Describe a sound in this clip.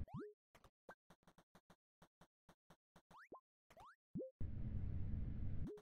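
Short rising game tones chirp for jumps.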